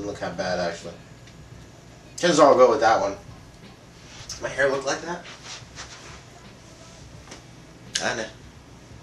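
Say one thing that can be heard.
A young man speaks casually close by in short bursts.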